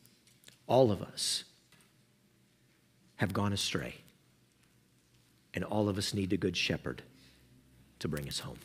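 A man speaks calmly into a microphone in a room with a slight echo, pausing between phrases.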